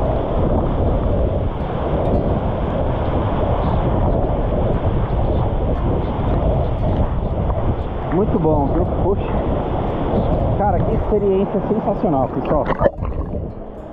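A waterfall roars steadily close by.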